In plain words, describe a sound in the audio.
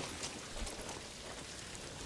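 A torch fire crackles nearby.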